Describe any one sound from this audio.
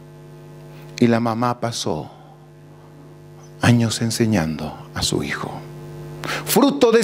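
A man preaches with animation through a microphone and loudspeakers.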